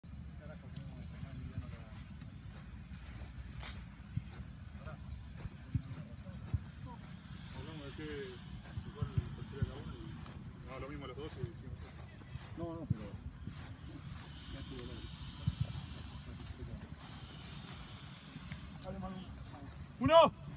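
Footsteps thud softly on grass.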